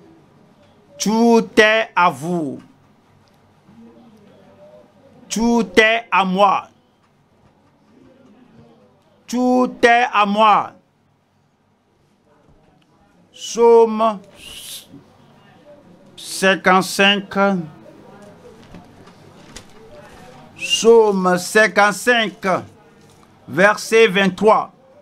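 An elderly man preaches through a microphone in short, emphatic phrases with pauses between them.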